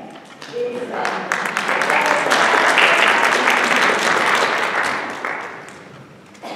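A choir sings together in a large, echoing hall.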